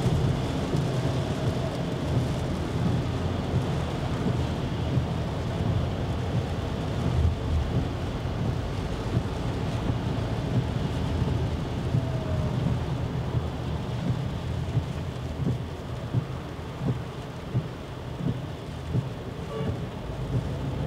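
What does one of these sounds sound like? Windscreen wipers sweep back and forth with soft regular thumps.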